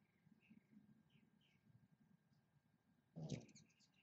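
A hummingbird's wings whir briefly as it flies off.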